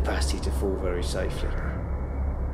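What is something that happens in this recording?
A man's body thumps and slaps onto a rubber floor.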